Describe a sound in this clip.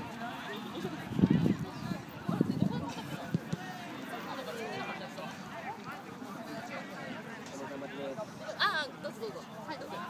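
Young men call out to each other across an open outdoor field.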